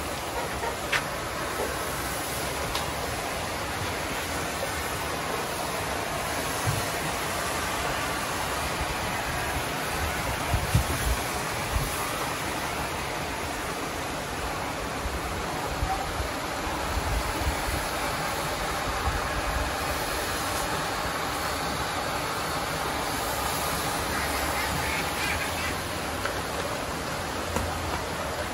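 A smoky fire hisses and crackles steadily.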